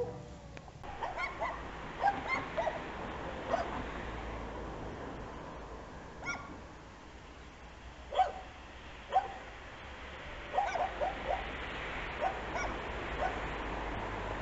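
A dog barks from a distance, several times.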